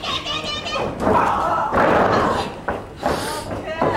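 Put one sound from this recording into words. A wrestler's body slams onto the mat with a thud.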